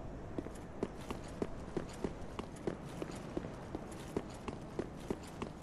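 Armoured footsteps clank quickly and evenly on stone.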